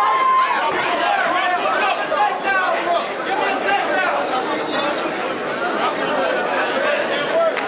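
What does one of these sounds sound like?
Punches thud against a fighter's body.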